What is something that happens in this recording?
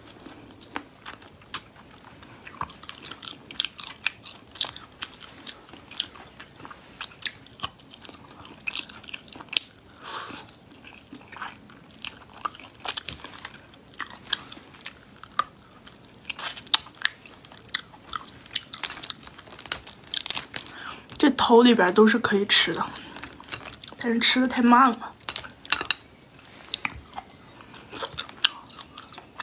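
Cooked shellfish shells crack and snap between fingers.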